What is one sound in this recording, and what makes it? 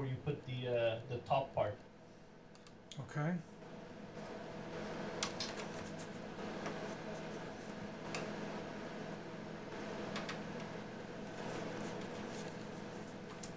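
Plastic drive trays click and knock as they are slid in and out of a computer case.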